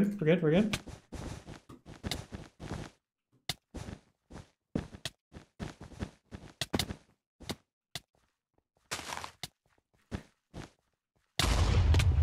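Blocks thud softly as they are placed, in a quick series of taps.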